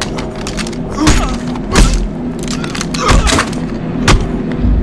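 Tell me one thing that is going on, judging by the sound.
Heavy thuds and knocks sound as two men scuffle at close quarters.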